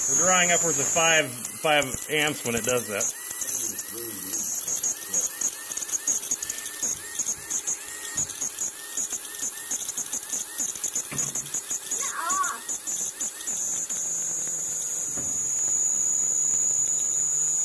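A small DC motor spins with a high-pitched whine.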